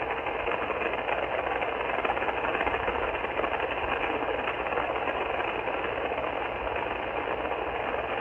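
Static hisses and crackles steadily from a radio receiver's speaker.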